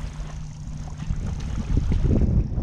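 Water splashes as a hooked fish thrashes at the surface.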